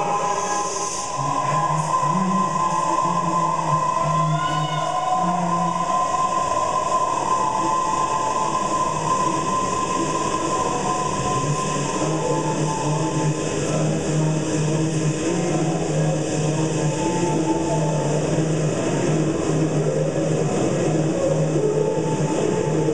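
A man sings into a handheld microphone over a loudspeaker.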